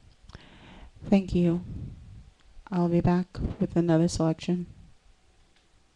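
A woman sings into a microphone in a strong, held voice.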